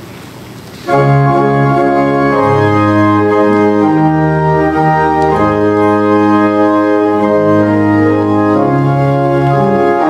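A choir sings a slow hymn.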